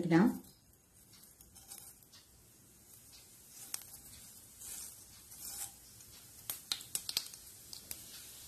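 Mustard seeds sizzle and pop in hot oil.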